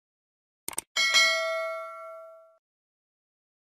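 A small bell chimes and rings out.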